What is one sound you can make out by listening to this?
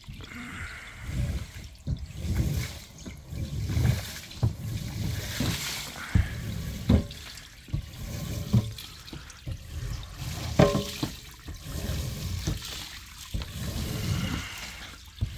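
A squeegee scrapes water across a wet rug in repeated strokes.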